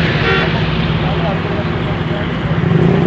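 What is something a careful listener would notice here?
A truck roars past on a road.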